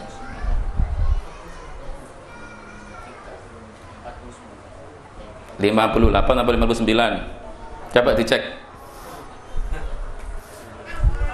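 A man speaks calmly into a lapel microphone, with pauses.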